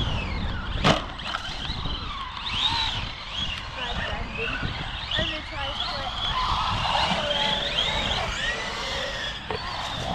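Tyres of a radio-controlled truck splash through puddles.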